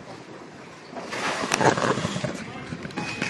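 Fabric rustles and bumps against the microphone.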